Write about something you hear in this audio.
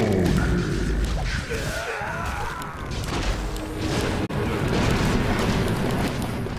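Game battle effects clash and crackle with spell sounds.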